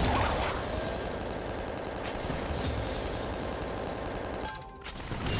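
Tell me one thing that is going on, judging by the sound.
Game spell effects crackle and burst in quick succession during a fight.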